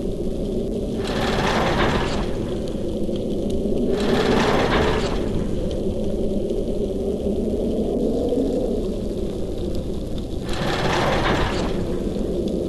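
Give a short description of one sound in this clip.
A heavy stone block grinds as it turns.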